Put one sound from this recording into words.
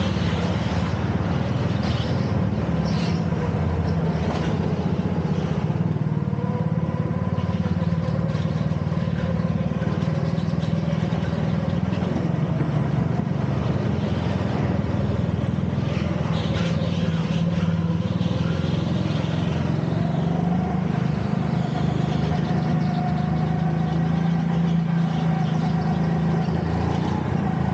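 A go-kart engine drones loudly and steadily, rising and falling in pitch as it speeds up and slows.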